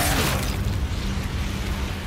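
A man growls menacingly.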